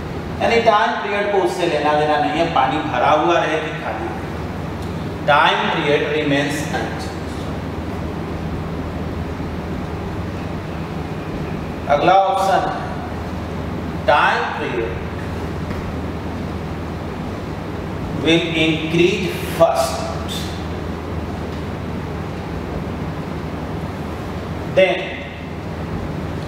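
A man speaks calmly in short bursts, close by in a room.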